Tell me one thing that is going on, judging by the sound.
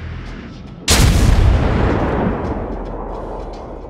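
A ship's big guns fire a loud booming salvo that rumbles away.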